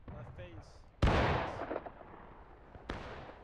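An explosion booms close by and rumbles away.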